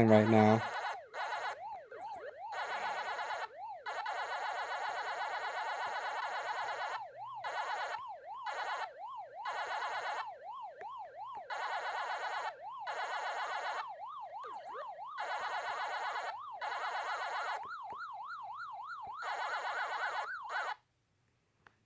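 An electronic siren warbles steadily up and down.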